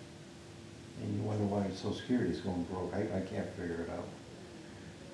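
A man speaks calmly through a meeting microphone.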